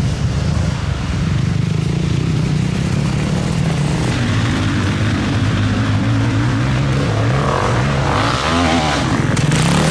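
A motorcycle engine revs hard and roars up close.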